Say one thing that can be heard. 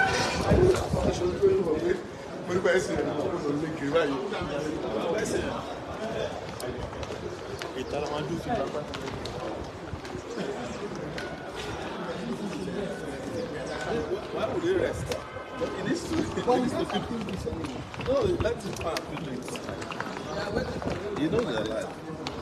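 A crowd of men chatter around.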